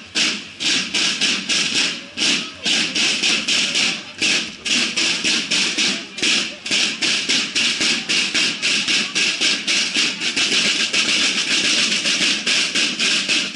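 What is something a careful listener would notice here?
Marching band drums beat a steady, loud rhythm outdoors.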